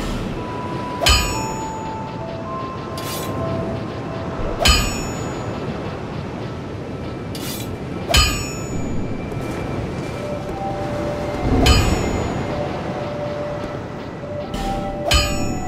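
A short chiming tone rings each time a game menu opens or closes.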